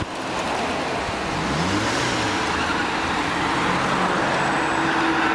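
Heavy traffic rumbles past steadily on a busy road.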